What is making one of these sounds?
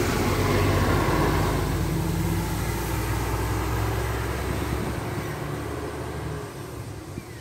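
A diesel coach bus drives away and fades into the distance.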